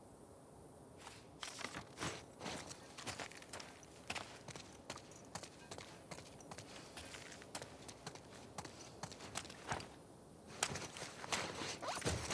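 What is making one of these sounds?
Footsteps crunch over debris on a floor.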